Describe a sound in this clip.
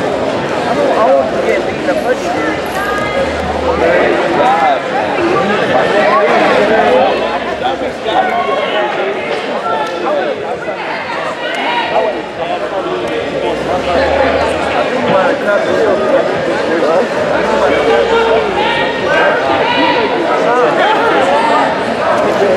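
A crowd of spectators shouts and cheers throughout.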